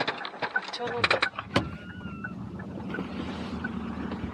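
A car door opens and shuts.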